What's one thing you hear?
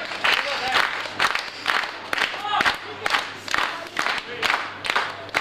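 A crowd claps in a fast, steady rhythm in an echoing hall.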